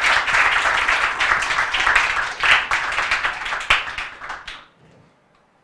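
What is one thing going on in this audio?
A crowd in a room applauds loudly, then the clapping fades away.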